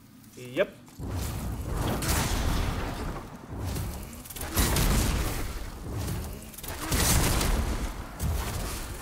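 Fiery blasts roar and crackle loudly.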